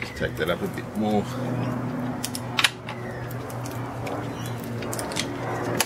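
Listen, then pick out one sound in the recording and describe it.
A ratchet wrench clicks rapidly as a bolt is turned.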